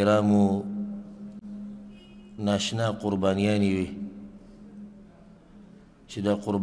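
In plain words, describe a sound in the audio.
A man recites in a slow, melodic chant through a microphone, with pauses between phrases.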